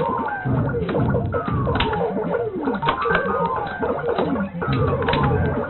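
A vintage arcade game thumps out a low, rhythmic walking beat.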